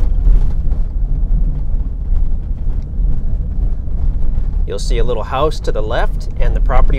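A car engine rumbles steadily at low speed.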